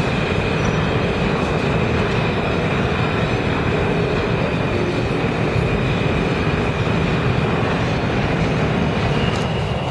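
A subway train rumbles past on the far track, loud and echoing.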